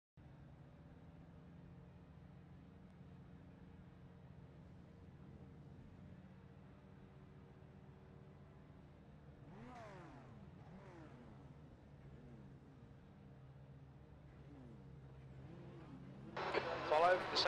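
A race car engine idles with a low, steady hum.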